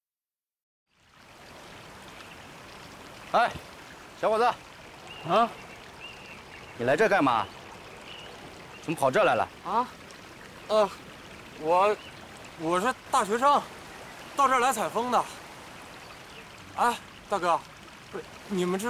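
A river rushes steadily in the background.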